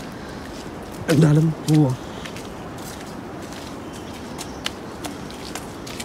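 Footsteps crunch and tap on a wet stone path.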